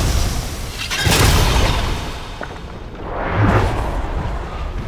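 A loud rushing whoosh of air sweeps past.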